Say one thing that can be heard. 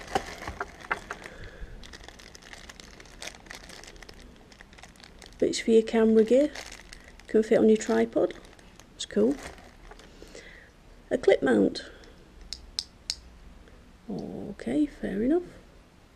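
Small plastic parts click and tap together.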